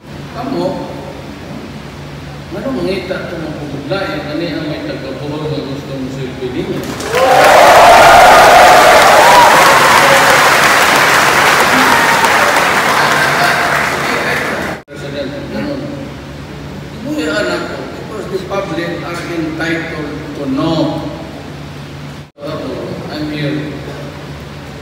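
A man speaks forcefully through loudspeakers in a large echoing hall.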